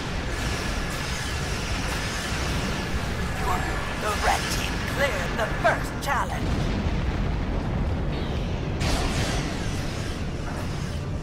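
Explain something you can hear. Laser weapons zap and hum in a video game.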